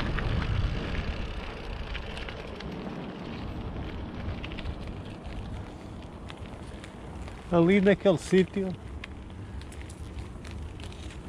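Bicycle tyres hum smoothly along a paved road.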